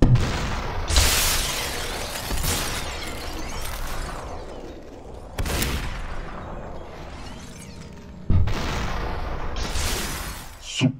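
Enemy figures shatter with a crunching burst.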